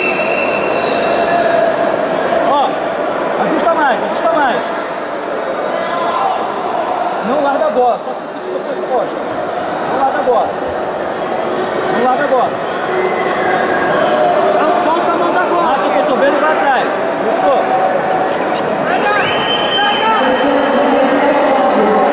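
A crowd of spectators shouts and calls out in a large echoing hall.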